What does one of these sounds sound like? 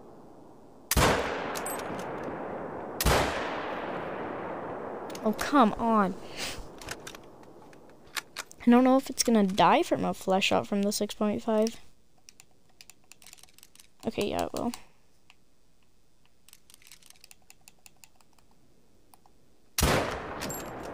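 A rifle fires loud shots that echo and roll away across open land.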